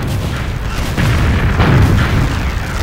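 A flamethrower roars loudly.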